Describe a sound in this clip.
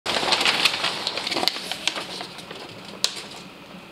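Paper rustles as a map is unfolded.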